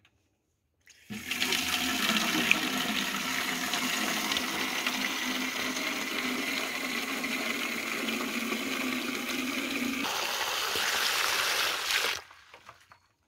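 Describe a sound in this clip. Water runs from a tap into a plastic watering can, filling it with a steady gush.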